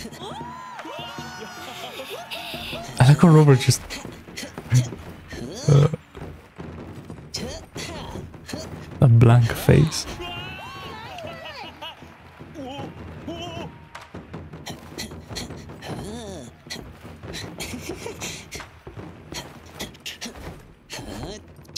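A young man talks and laughs with animation, close to a microphone.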